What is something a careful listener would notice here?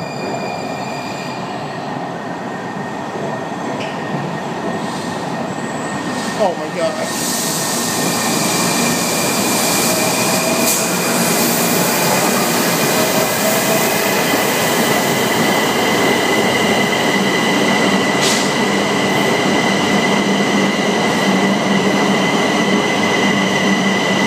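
Train wheels squeal with a steady high whine on the rails.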